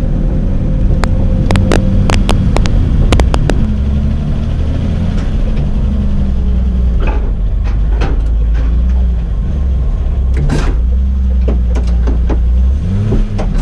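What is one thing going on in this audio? Sharp clicks and knocks rattle inside the car.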